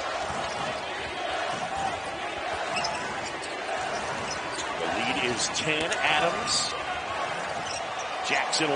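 A large indoor crowd murmurs and cheers steadily in an echoing arena.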